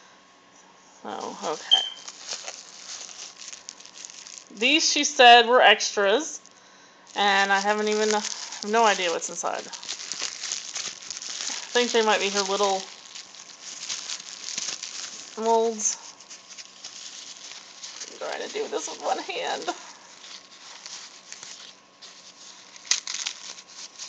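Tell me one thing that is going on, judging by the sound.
Plastic bubble wrap crinkles and rustles as it is handled close by.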